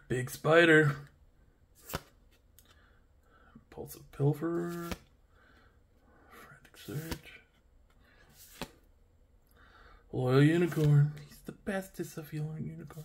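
Playing cards slide and flick against each other in a hand.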